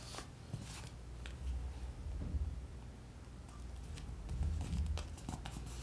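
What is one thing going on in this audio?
Hands press and rub paper down onto a page.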